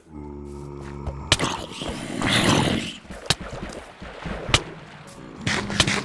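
A zombie groans in a low, rasping voice.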